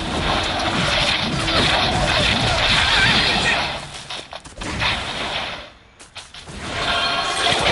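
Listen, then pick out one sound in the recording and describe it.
Bursts of energy blasts crackle and boom as fighters clash.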